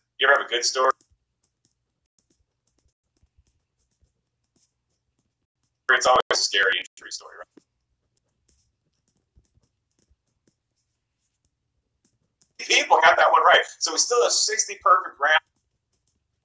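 A man speaks calmly and close, as if into a phone's microphone.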